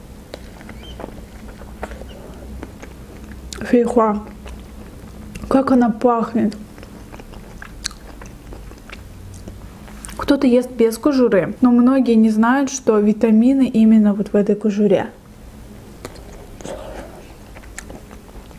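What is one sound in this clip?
A young woman chews crunchy fruit with wet, crisp bites.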